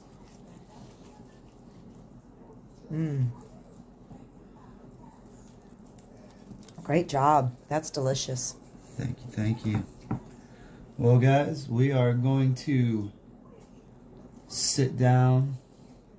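A knife slices through crisp roasted skin and meat.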